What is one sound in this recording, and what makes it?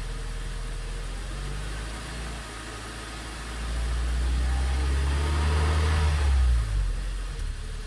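An engine revs up, then settles back down.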